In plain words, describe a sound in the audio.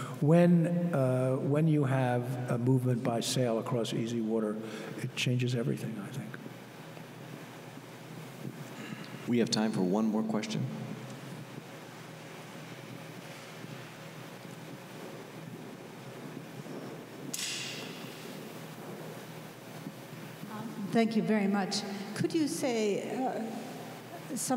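An elderly man speaks slowly and deliberately through a microphone, with long pauses.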